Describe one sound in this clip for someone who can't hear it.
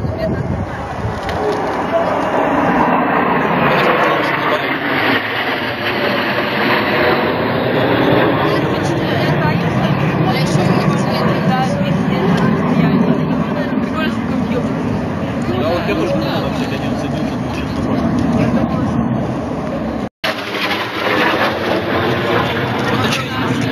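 Jet planes roar loudly overhead, the sound swelling and fading.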